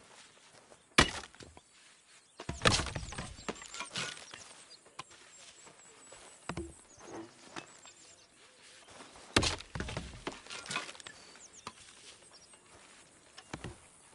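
Small objects knock and clatter as they are handled.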